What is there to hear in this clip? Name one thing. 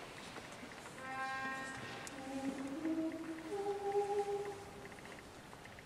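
A young woman sings a single held note, joined by others.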